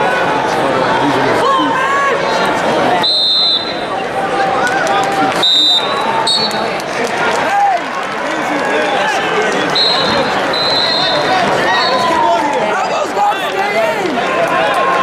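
A large crowd murmurs and cheers in a large echoing arena.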